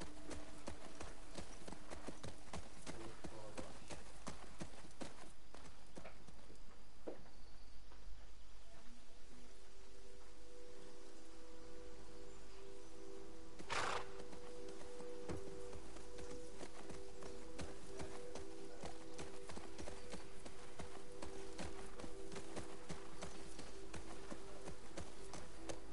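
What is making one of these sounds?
Tall grass rustles and swishes against a horse's legs.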